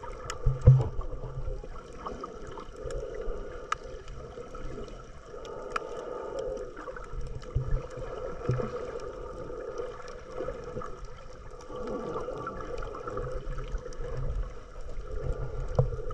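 Water sloshes and rumbles with a muffled, underwater sound.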